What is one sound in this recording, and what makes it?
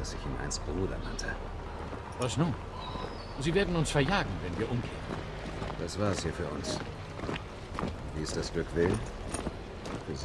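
A second man answers in a low, calm voice.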